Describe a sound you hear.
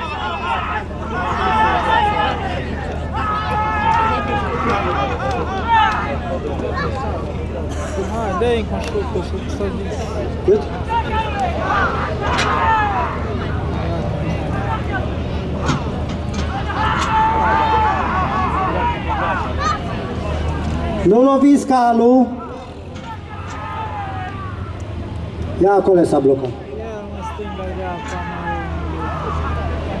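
Men shout and call out loudly outdoors.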